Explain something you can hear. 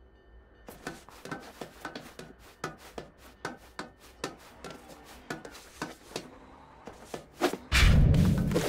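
Quick footsteps patter on a hard surface.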